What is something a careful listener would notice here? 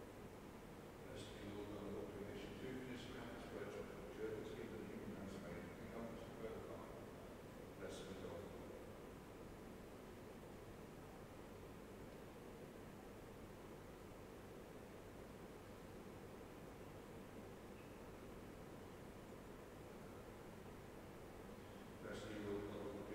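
A man speaks calmly at a distance in a large echoing hall.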